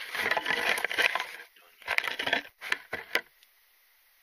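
Dry brush rustles and crackles close by.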